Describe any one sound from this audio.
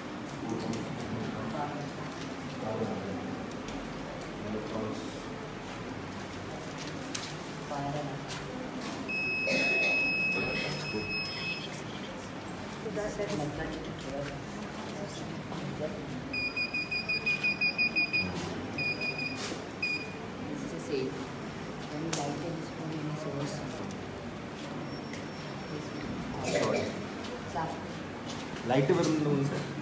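A man speaks briefly in a low voice.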